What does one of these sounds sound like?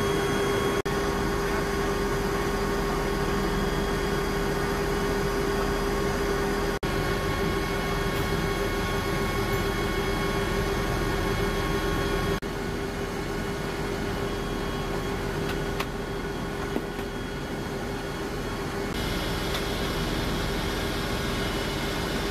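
A helicopter engine drones loudly and steadily inside the cabin.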